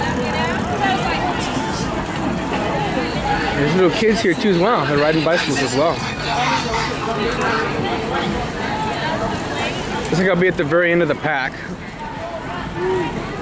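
A crowd of young men and women chatters and calls out loudly outdoors.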